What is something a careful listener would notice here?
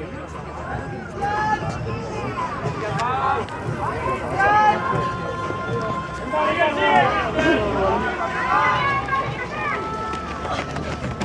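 Spectators cheer and shout excitedly.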